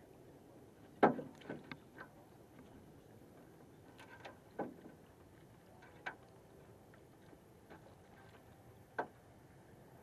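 Knocks and thumps sound on a boat's deck.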